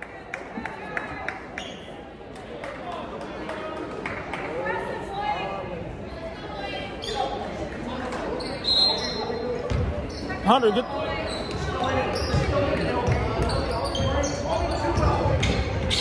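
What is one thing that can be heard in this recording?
A basketball bounces repeatedly on a hard floor in a large echoing hall.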